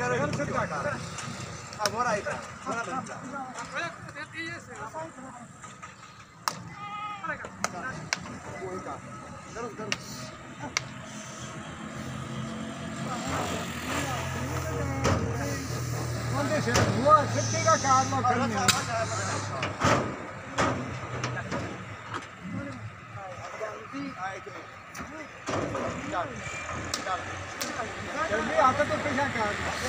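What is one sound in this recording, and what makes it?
Men shout and call out nearby outdoors.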